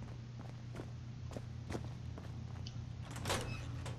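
A heavy metal door opens with a clunk.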